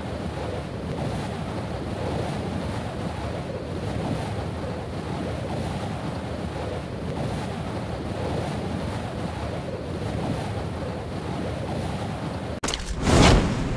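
Wind rushes loudly and steadily past a falling skydiver.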